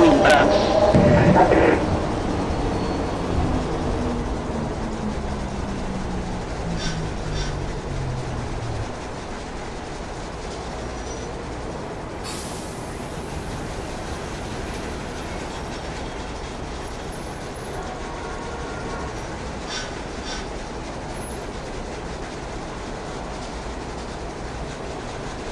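A train rumbles steadily on the rails.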